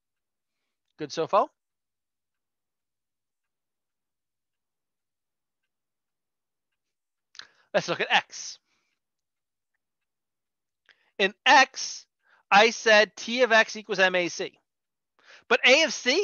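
A woman speaks calmly into a microphone, explaining, with pauses.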